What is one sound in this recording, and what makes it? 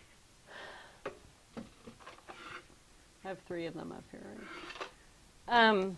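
Small items clatter on a shelf.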